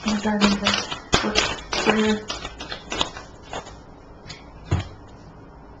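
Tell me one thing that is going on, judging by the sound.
A deck of cards is shuffled by hand.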